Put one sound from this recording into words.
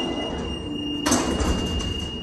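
A lift door closes with a loud clunk.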